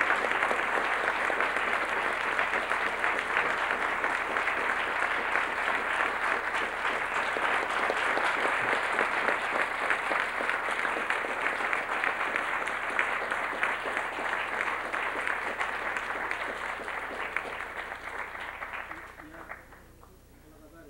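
An audience applauds loudly in a large hall, then the applause fades.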